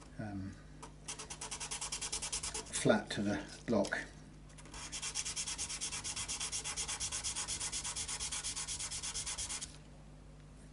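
A blade scrapes rapidly and rhythmically back and forth.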